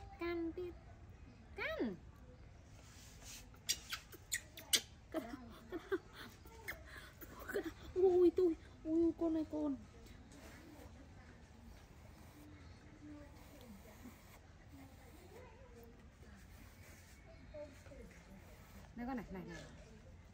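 A woman speaks softly and close by to a baby monkey.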